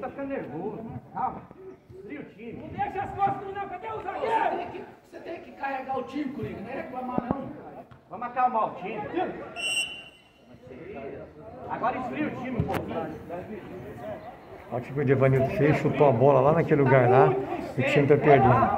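Men shout and call out across an outdoor football pitch.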